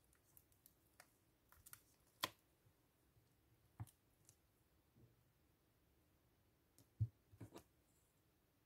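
Clear plastic stamps tap and click softly against a sheet.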